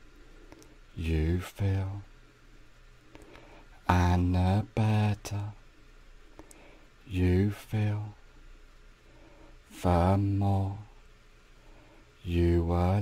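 A man speaks calmly and closely, in short phrases with pauses.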